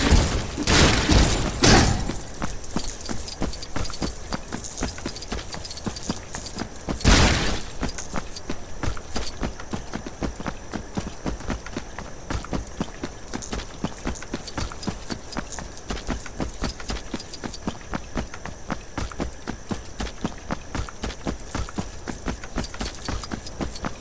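Coins jingle and clink as they are collected.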